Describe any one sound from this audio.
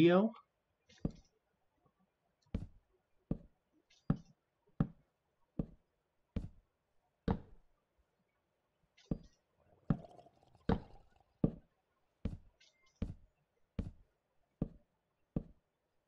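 Wooden blocks are placed with short dull knocks, one after another at a steady pace.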